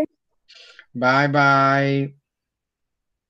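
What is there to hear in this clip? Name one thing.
A young girl speaks through an online call.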